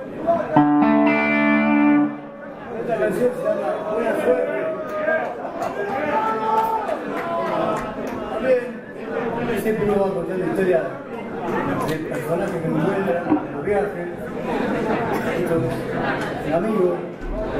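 An electric guitar plays loudly through amplifiers.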